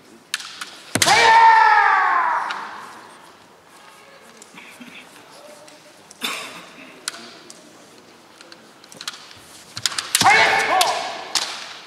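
Kendo fighters, adult men, shout drawn-out battle cries in an echoing hall.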